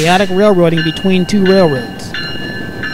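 A locomotive horn blares in loud, long blasts close by.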